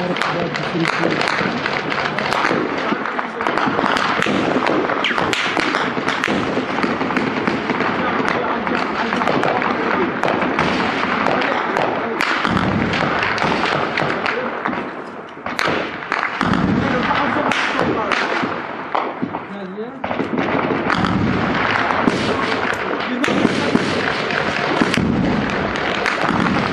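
Rifles fire in rapid bursts nearby.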